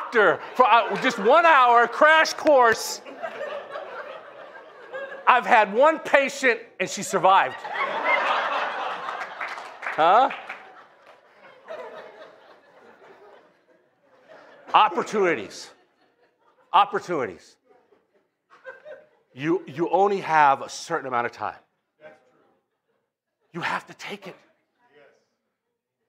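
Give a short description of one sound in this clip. A middle-aged man preaches with animation through a microphone in an echoing hall, pausing often.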